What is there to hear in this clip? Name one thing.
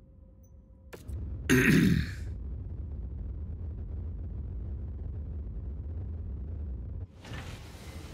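A spaceship's engines rumble steadily.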